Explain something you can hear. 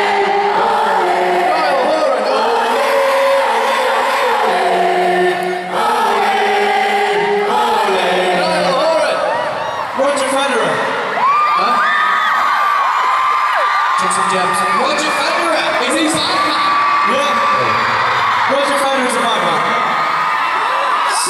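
A young man sings into a microphone, heard through loudspeakers in a large echoing arena.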